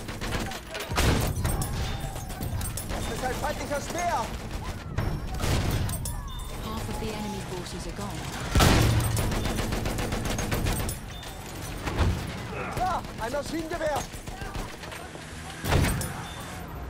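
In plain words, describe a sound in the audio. A tank cannon fires with heavy booming blasts.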